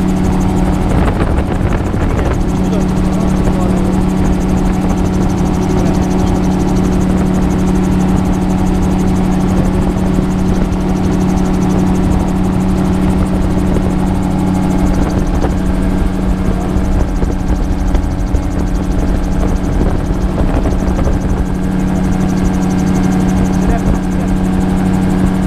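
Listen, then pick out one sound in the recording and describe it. Wind rushes and buffets loudly.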